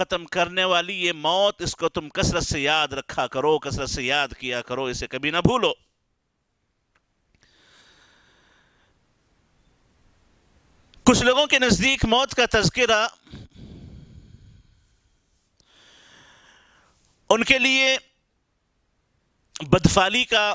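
A man speaks calmly and clearly into a close microphone, with pauses.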